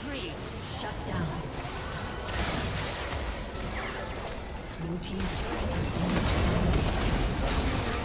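Magic spells crackle and burst in a busy fantasy battle.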